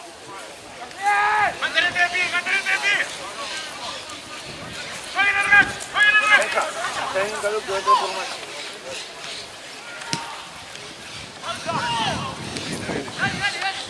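Young men shout loudly to each other across an open field.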